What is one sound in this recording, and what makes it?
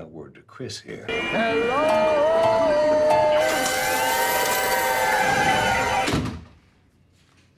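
A slot machine plays bright jingling tones.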